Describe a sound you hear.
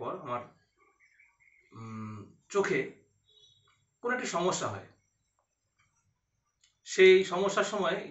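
A young man speaks calmly and close by, in short bursts with pauses.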